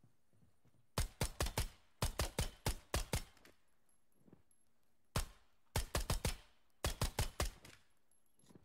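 Gunshots fire in rapid bursts close by.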